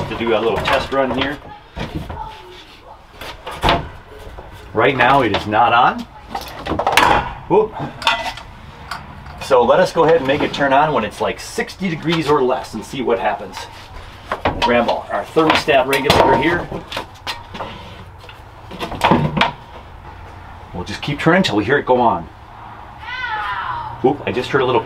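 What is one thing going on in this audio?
Small objects click and knock as a man handles them.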